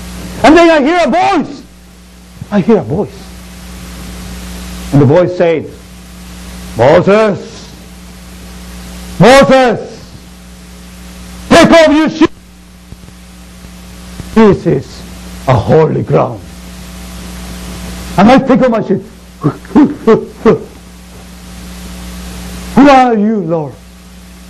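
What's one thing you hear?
A man speaks loudly and theatrically in short bursts through a microphone, in a large echoing room.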